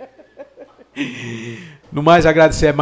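A man laughs briefly close to a microphone.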